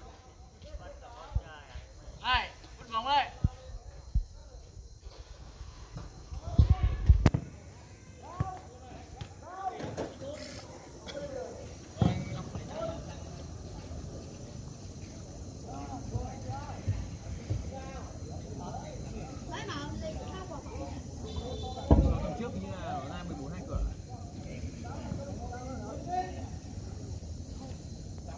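Young men shout and call out across an outdoor football pitch.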